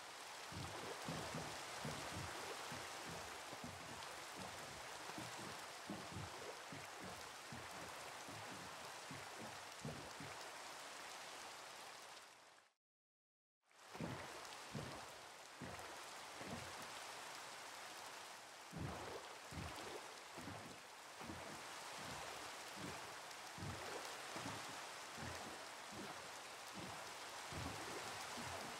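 Oars splash rhythmically as a boat is rowed.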